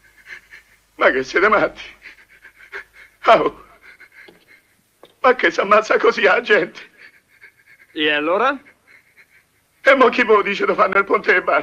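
A man speaks excitedly and loudly, close by.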